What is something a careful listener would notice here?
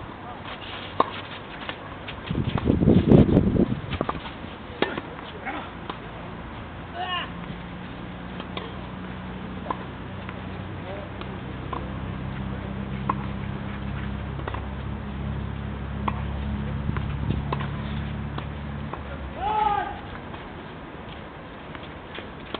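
Tennis balls are struck with rackets in a rally.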